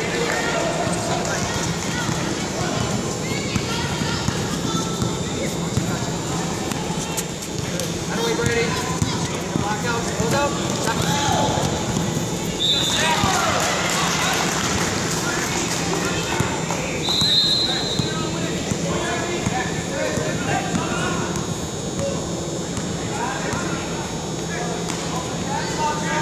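Young players and spectators call out in a large echoing hall.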